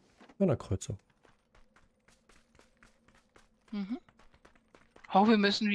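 Quick footsteps patter steadily on the ground.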